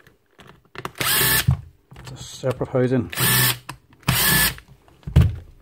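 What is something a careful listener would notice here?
A cordless screwdriver whirs in short bursts.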